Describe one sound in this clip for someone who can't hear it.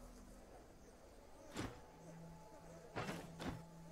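A short click sounds.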